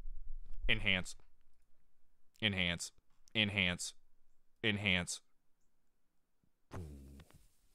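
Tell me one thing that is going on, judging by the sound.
A man speaks in short, clipped phrases close to a microphone.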